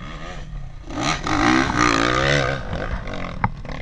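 A dirt bike engine revs loudly up close.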